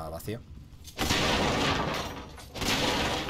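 Wooden objects crash and break.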